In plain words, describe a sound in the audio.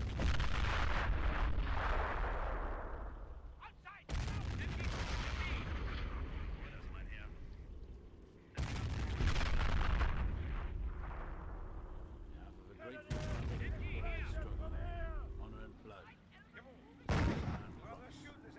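Heavy explosions boom and rumble, one after another.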